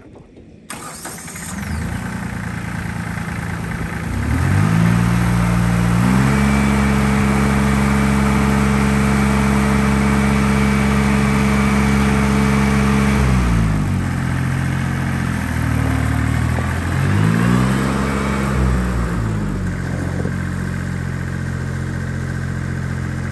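A small tractor engine runs close by, revving up and down.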